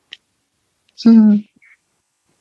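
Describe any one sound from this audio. A middle-aged woman makes a short humming sound.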